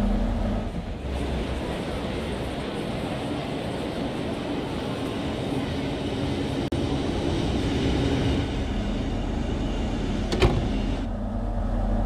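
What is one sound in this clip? A train rolls into a station platform.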